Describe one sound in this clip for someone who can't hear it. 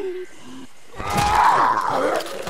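A man growls and snarls.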